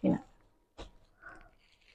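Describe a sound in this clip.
Smooth fabric rustles softly as it is handled.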